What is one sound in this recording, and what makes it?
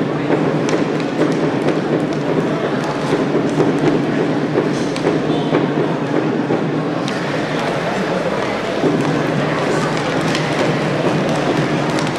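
Hockey sticks tap and click against a puck.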